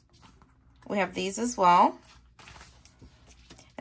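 Sheets of paper rustle softly as they are handled.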